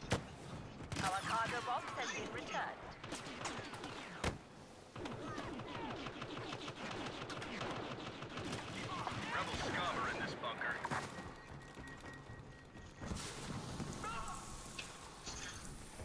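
Blaster shots fire in rapid bursts.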